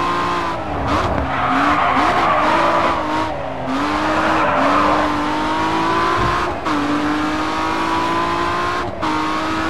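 A car engine roars and shifts gears as the car speeds along.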